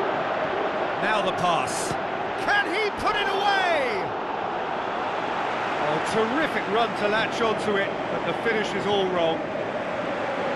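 A stadium crowd cheers and whistles loudly.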